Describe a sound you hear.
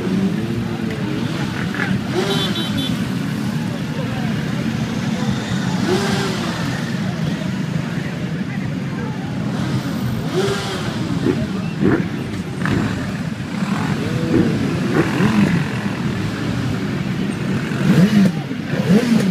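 Motorcycle engines rev up and down again and again.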